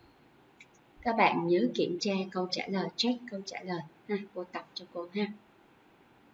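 A young woman speaks calmly and clearly into a close microphone.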